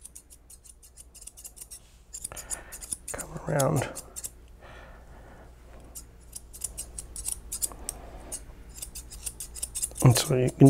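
Small scissors snip crisply at fur, again and again.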